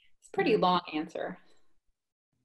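A woman speaks cheerfully over an online call.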